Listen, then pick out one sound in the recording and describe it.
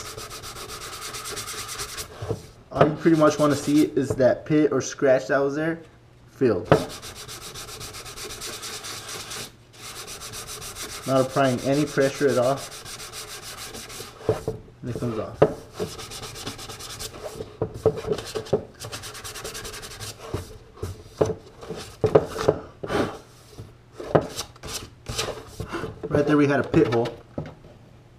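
Sandpaper rubs back and forth over plastic.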